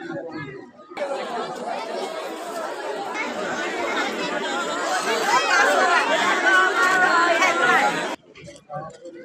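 A crowd of women talk loudly together.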